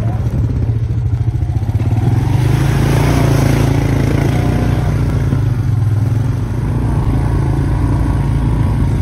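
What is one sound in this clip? A small engine drones steadily close by.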